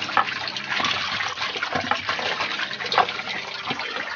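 Hands swish and splash water in a basin.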